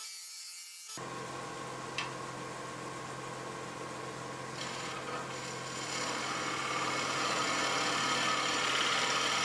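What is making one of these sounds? A gouge scrapes and hisses against spinning wood.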